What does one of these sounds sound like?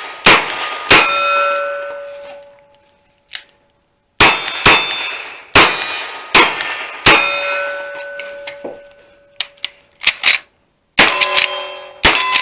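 Steel targets ring out with a lingering metallic tone after hits.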